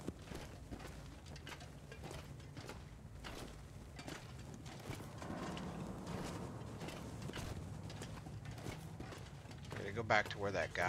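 Footsteps crunch on a rocky floor.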